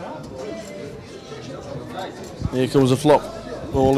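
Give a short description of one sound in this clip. Poker chips clack together on a table.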